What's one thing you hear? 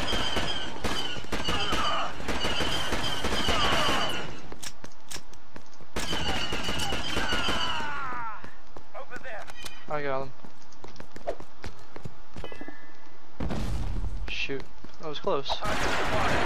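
Laser guns fire in quick bursts of sharp zaps.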